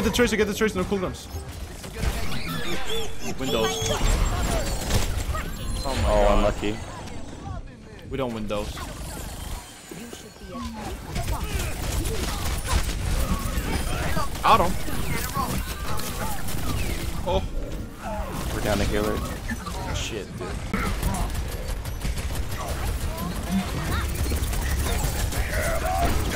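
Gunfire rattles and explosions boom in a game.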